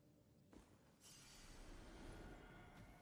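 A magical spell crackles and shimmers with a soft hiss.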